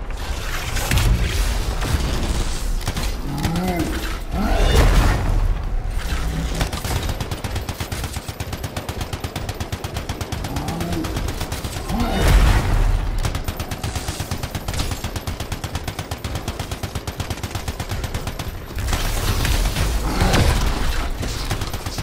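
Electric blasts crackle and boom.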